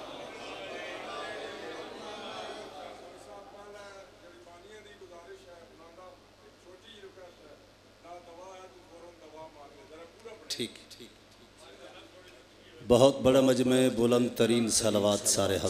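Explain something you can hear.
A man speaks with feeling into a microphone, his voice amplified through loudspeakers.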